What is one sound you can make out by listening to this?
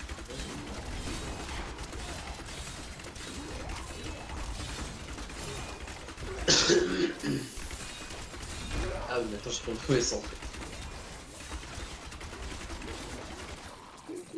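Fiery blasts whoosh and crackle in battle.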